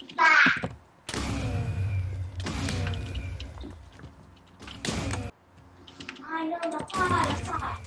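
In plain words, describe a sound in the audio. Fireworks pop and crackle in a game.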